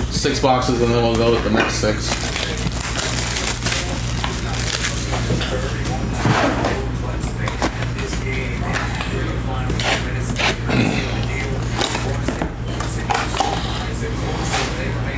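Cardboard boxes rustle and tap as hands handle them.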